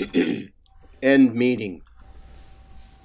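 An older man speaks briefly over an online call.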